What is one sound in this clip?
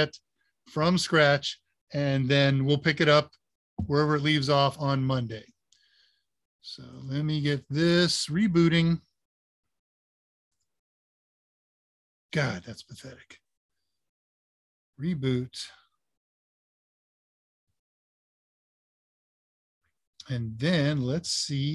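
An older man speaks calmly through an online call, in bursts with long pauses.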